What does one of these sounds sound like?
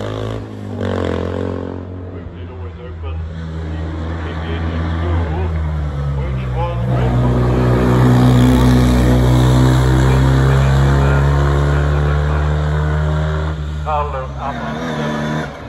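A small racing car engine roars loudly as it climbs past and fades uphill.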